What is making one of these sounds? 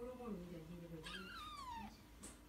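A kitten meows softly.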